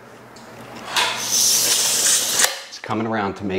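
A metal tape measure slides and rattles.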